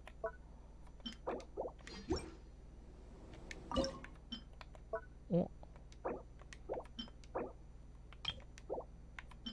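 Short soft interface blips and clicks sound again and again as menu items are chosen.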